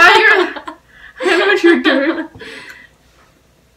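A young woman laughs close by.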